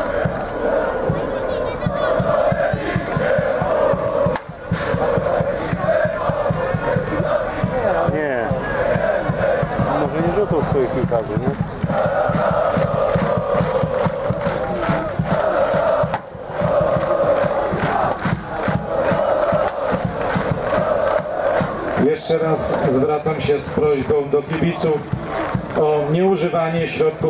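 A large crowd of fans chants loudly in an open stadium.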